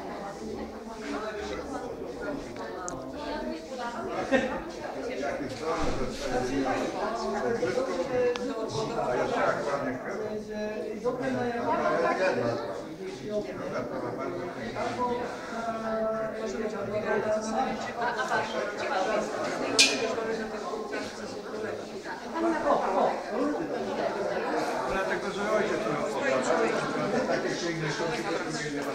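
A crowd of elderly men and women chat with one another in a room with some echo.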